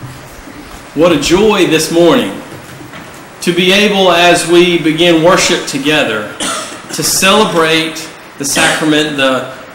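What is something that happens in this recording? A young man speaks calmly, heard through a microphone in a large echoing hall.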